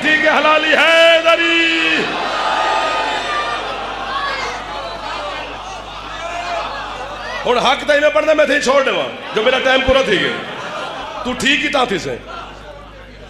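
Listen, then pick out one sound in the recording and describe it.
A crowd of men shout together in response.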